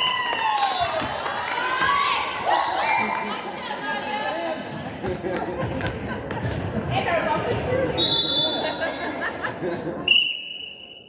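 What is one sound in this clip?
Young girls chatter and call out across the hall.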